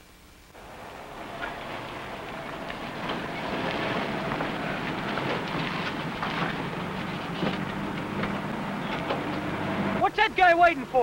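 A 1950s sedan's engine rumbles as the car pulls up.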